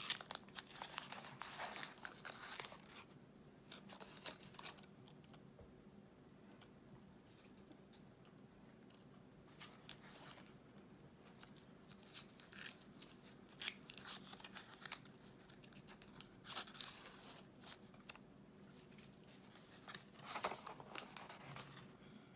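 Foil wrapping crinkles and rustles as hands unwrap a chocolate.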